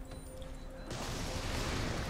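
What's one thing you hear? A gun fires nearby.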